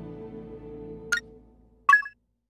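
Soft game music plays and then stops.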